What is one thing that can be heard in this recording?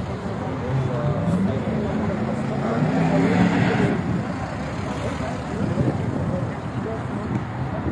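A car engine hums as a car rolls slowly past.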